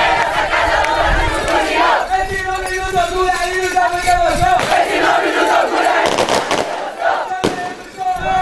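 A crowd of young men and women cheers and shouts loudly close by.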